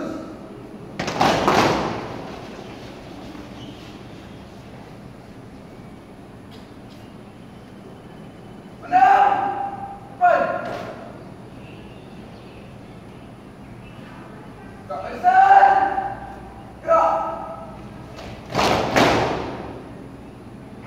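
Many feet stamp on a hard floor at once.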